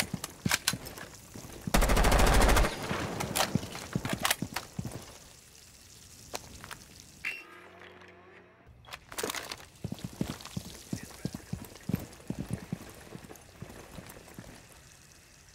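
Footsteps tap and scuff on hard pavement.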